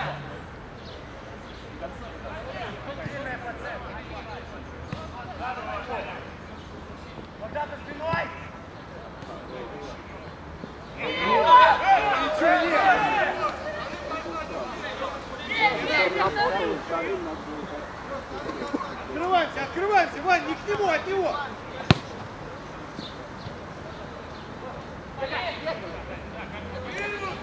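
Men shout to each other outdoors across an open field.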